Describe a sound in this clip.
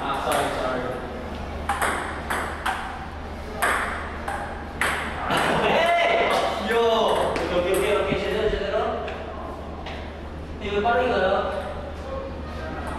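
A ping-pong ball clicks back and forth between paddles and a table.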